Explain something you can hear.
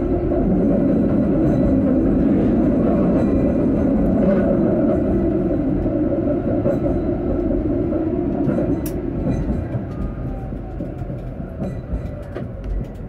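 A tram rumbles steadily along its rails, slowly quietening.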